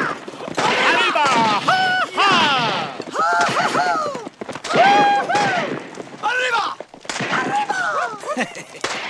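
A crowd whoops and cheers loudly outdoors.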